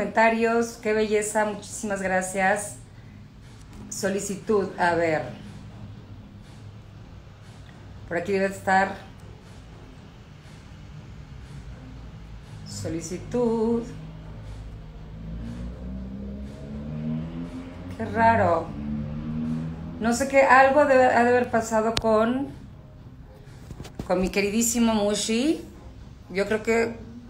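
A woman speaks calmly and close, in bursts with pauses.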